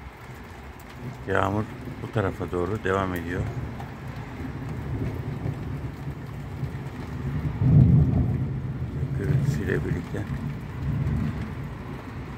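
Wind blusters outdoors in low gusts.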